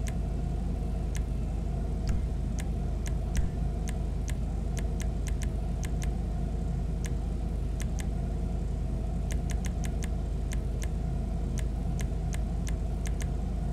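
Short menu ticks click repeatedly as selections change.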